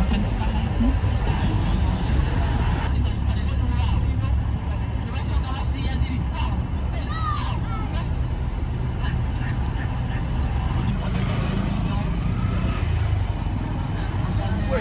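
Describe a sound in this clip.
A car engine rumbles steadily from inside a moving car.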